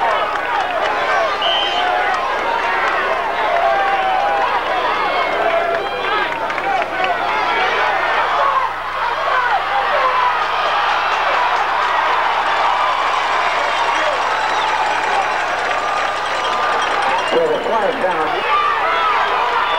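A large crowd of spectators cheers and shouts outdoors.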